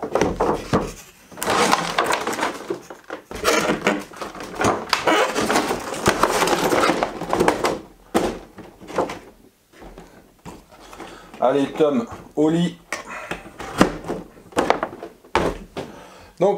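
Cardboard and plastic rustle and scrape as a box is opened.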